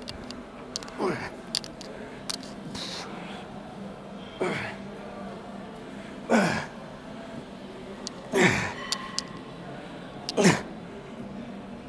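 A man grunts and exhales hard with each lift.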